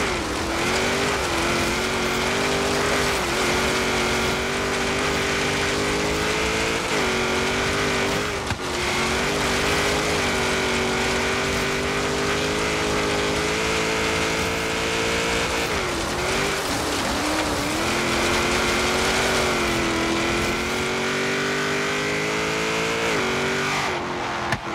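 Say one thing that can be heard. A racing car engine roars loudly, revving up and dropping as it shifts gears.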